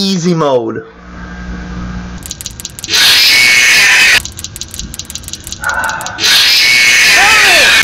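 A young man yells and screams close to a microphone.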